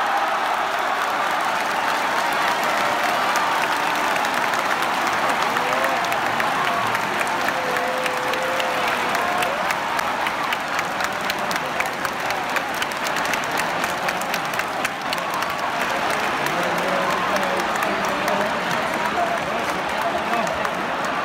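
Fans clap and beat noisemakers in quick rhythm.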